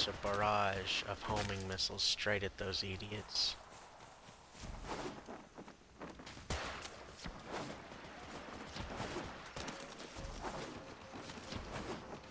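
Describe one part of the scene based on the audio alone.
A blade swishes and slashes through the air.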